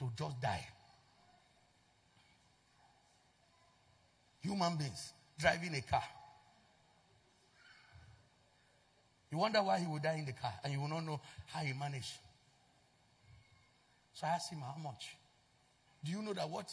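A man speaks with animation into a microphone, in bursts with long pauses.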